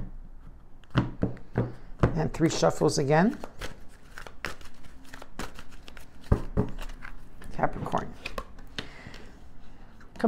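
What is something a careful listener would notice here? Cards shuffle and tap together in a woman's hands.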